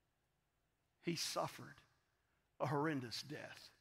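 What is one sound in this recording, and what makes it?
A middle-aged man speaks with emphasis into a microphone.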